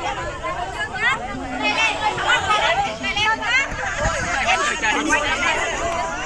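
Several young people talk and call out excitedly close by, outdoors.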